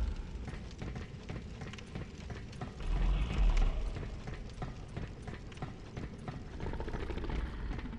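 Metal rungs clank as someone climbs a ladder.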